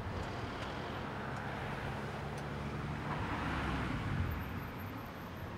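A truck drives past.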